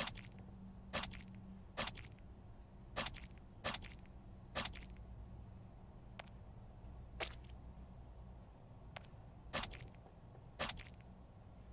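A palette knife dabs and smears wet paint with short soft clicks.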